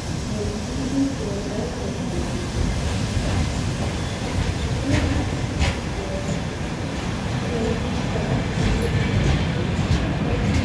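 A train rumbles past slowly, its wheels clattering on the rails.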